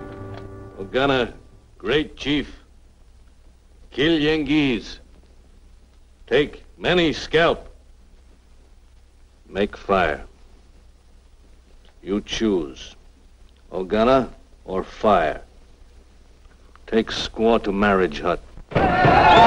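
A man speaks firmly in pauses.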